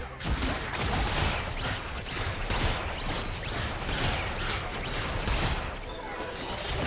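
Video game battle effects crackle and boom.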